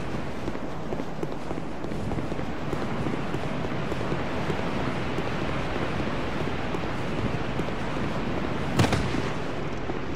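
Footsteps in armour run over stone.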